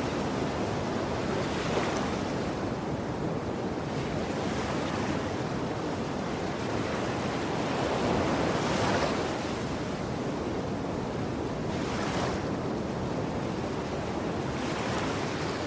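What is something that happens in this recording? Sea water rushes and washes steadily around a moving ship.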